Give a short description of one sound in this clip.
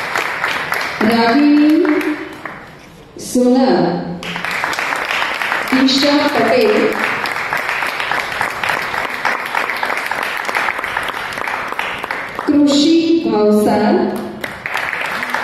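A woman speaks through a microphone in an echoing hall.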